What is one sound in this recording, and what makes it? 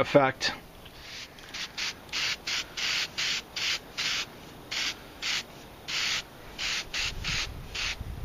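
A spray can hisses in short, repeated bursts.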